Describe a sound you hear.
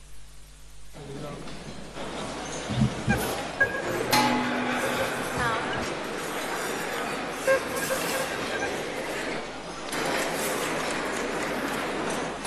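Musicians play traditional string and percussion instruments.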